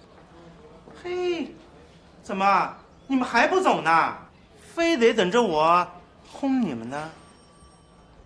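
A man speaks sharply and with annoyance, close by.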